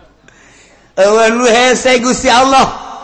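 An older man chants loudly into a microphone.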